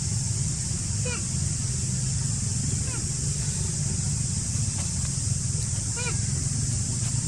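A baby monkey squeaks in short, high cries.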